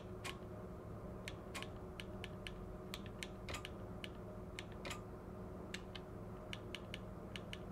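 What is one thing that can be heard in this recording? Switches click sharply, one after another.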